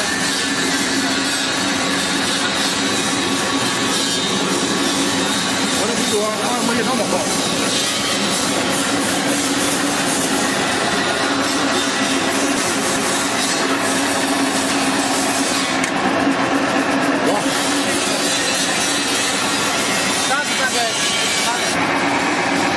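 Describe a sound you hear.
A pellet machine runs with a loud, steady mechanical drone.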